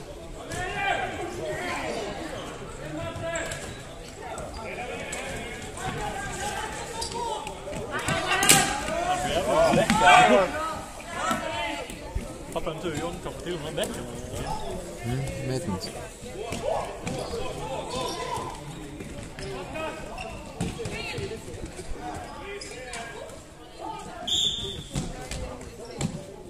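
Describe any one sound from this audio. Spectators talk and cheer in a large echoing hall.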